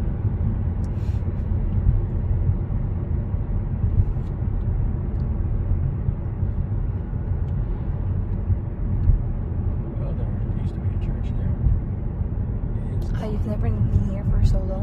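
Tyres rumble on a paved road, heard from inside a moving car.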